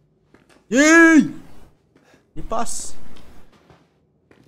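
A young man speaks with animation, close into a microphone.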